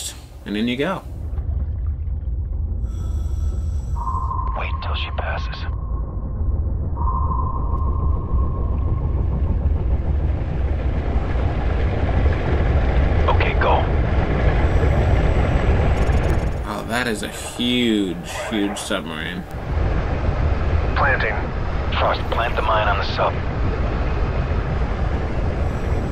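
A low engine hums and rumbles steadily underwater.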